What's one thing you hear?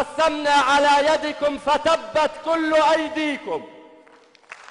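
A man recites loudly and with passion through a microphone in a large hall.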